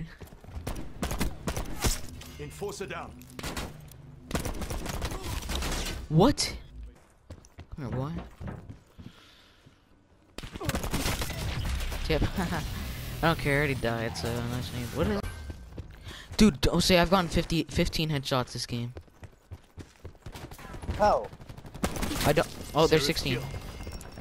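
A sniper rifle fires sharp, loud shots.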